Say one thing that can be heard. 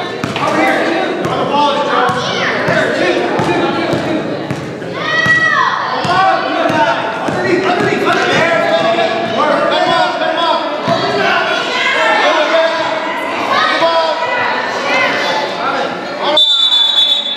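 Children and adults shout and cheer in a large echoing gym.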